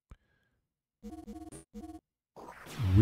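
Short electronic menu beeps chime in quick succession.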